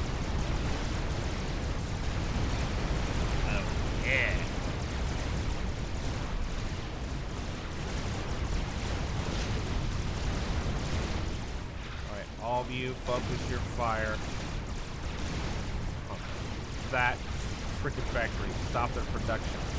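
Gunfire crackles rapidly.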